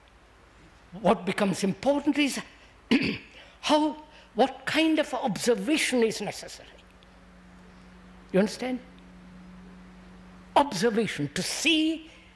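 An elderly man speaks slowly and thoughtfully into a microphone, with long pauses.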